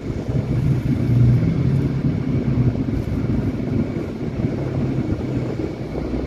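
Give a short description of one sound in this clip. Motorcycle engines hum steadily close by.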